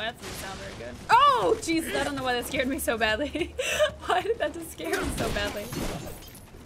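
A young woman laughs.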